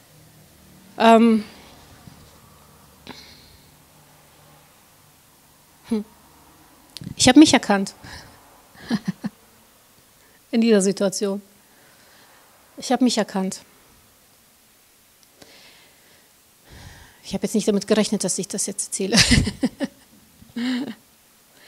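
A woman speaks calmly into a microphone in bursts, with pauses between phrases.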